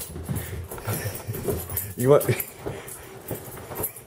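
A dog jumps onto a soft couch with a muffled thump.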